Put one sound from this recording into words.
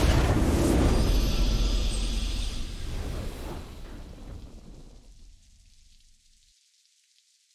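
A triumphant game victory fanfare plays and fades away.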